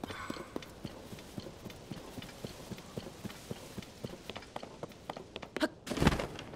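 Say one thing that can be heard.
Footsteps patter quickly on grass.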